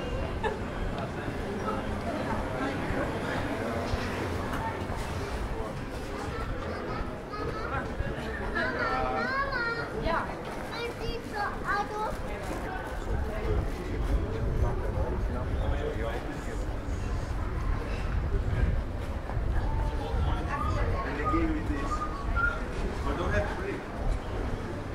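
Men and women chat quietly as they pass by outdoors.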